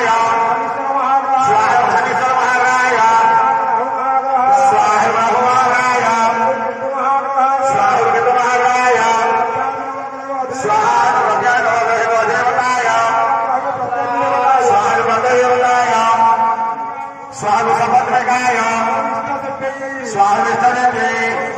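Men chant together in a steady, sung drone.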